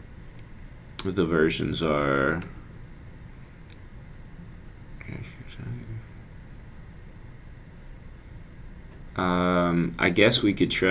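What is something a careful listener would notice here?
A young man speaks calmly into a close microphone, in short bursts.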